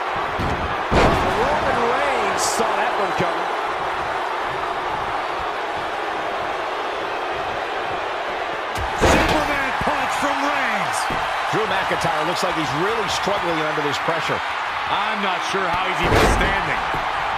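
Heavy bodies slam down hard onto a wrestling ring mat with loud thuds.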